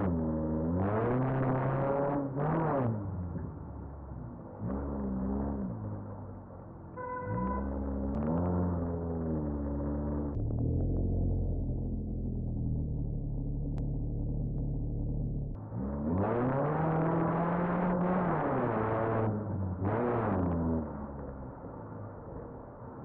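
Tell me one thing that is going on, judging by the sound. A car engine revs up and down through gear changes.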